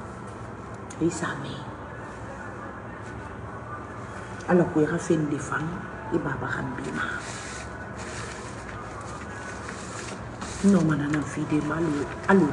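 A middle-aged woman speaks calmly and close to a phone microphone, with pauses.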